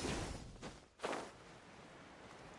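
A glider's wings whoosh open.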